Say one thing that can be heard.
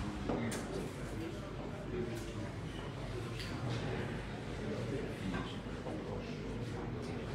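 Several men murmur and talk quietly nearby.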